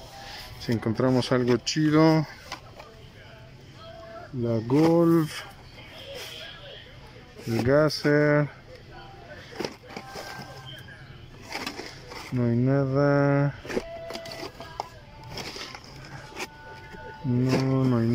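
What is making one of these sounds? Plastic toy packages rustle and clack as a hand flips through them.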